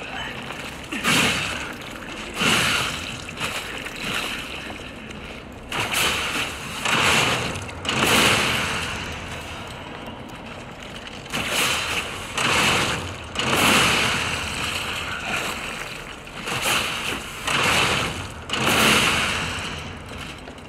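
A heavy weapon swings and strikes with loud crunching blows.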